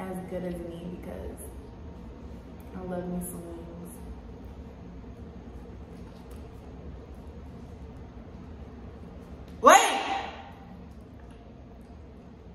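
A young woman chews crunchy food with smacking sounds.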